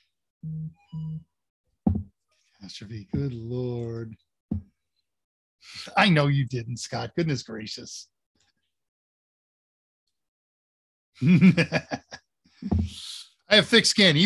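An older man laughs.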